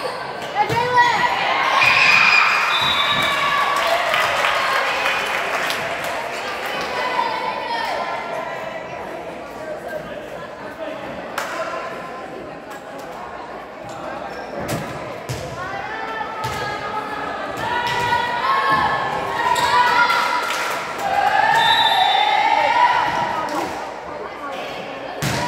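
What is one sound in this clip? Young women shout and call out to each other in a large echoing gym.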